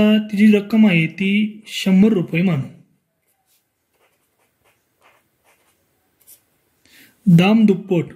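A marker pen squeaks and scratches on paper.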